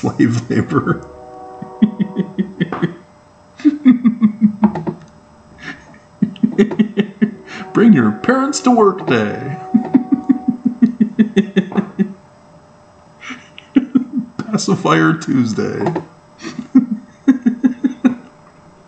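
A middle-aged man chuckles.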